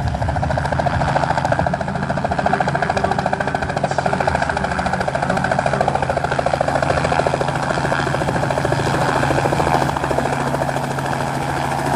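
A helicopter engine whines steadily.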